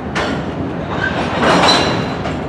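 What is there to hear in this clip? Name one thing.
Steel wheels squeal faintly on the track.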